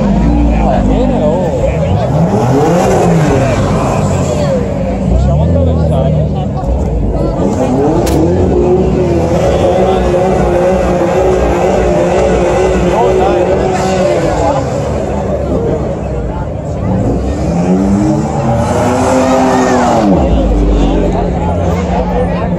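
Sports car engines rev loudly, rising and falling in pitch.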